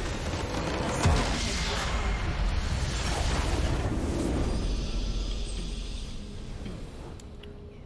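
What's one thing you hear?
A crystal shatters in a loud, rumbling blast that slowly dies away.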